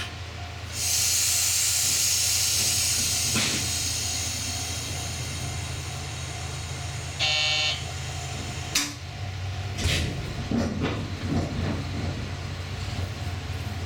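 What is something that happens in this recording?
A train hums steadily as it rolls slowly along the track.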